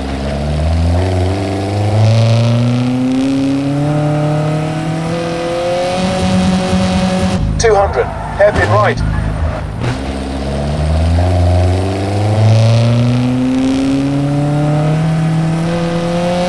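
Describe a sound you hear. A car engine roars and revs up steadily through the gears.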